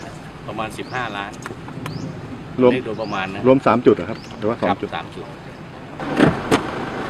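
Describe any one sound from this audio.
A middle-aged man speaks calmly into microphones outdoors.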